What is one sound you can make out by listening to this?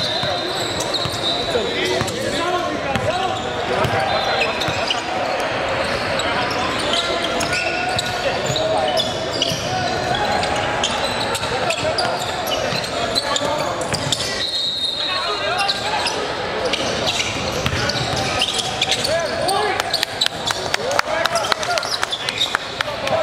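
A basketball bounces on a hardwood floor with sharp thuds.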